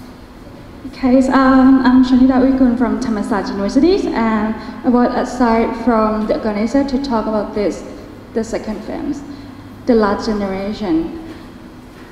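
A woman speaks with animation through a microphone and loudspeaker in an echoing room.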